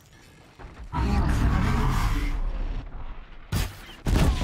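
Fire bursts and crackles with a whoosh.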